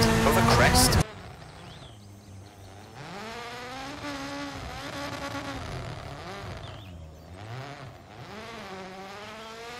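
A rally car engine whines and revs in the distance.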